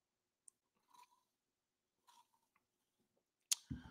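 A man slurps a drink through a straw.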